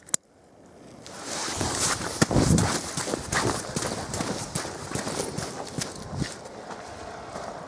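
A lit fuse fizzes and hisses.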